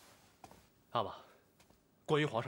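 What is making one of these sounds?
A young man speaks briefly in a low voice.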